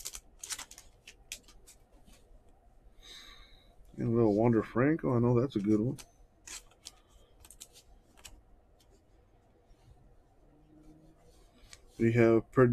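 Glossy trading cards slide and flick against each other as hands flip through them.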